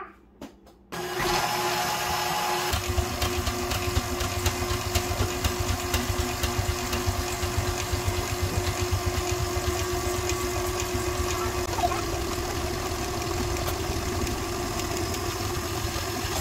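A kitchen mixer motor whirs loudly and steadily.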